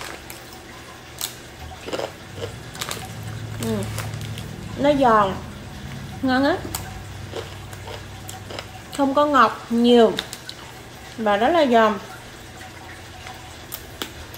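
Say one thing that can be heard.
Crunchy crackers crunch as a young woman chews.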